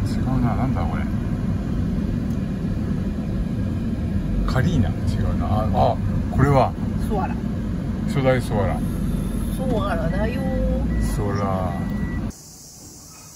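A car engine hums low and steady while driving slowly.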